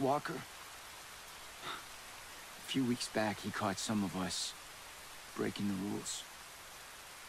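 A man speaks calmly and gravely up close.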